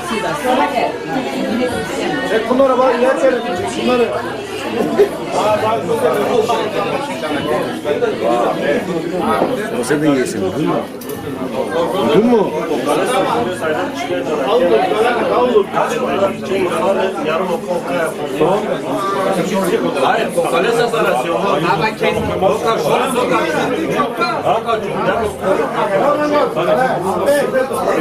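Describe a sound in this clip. Several men talk loudly over one another close by.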